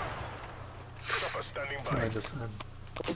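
A young man talks excitedly into a headset microphone.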